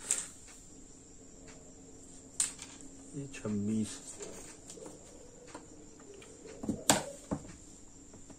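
A ruler taps and clicks on a table.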